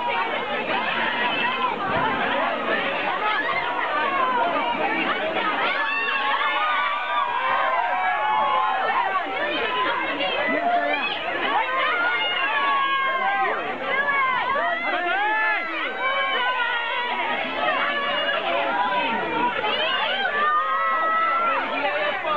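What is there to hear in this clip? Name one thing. A crowd of people talks and calls out excitedly outdoors.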